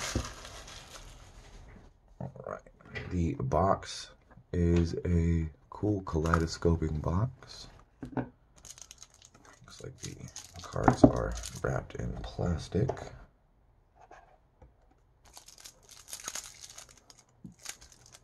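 Cardboard boxes rub and tap as hands handle them.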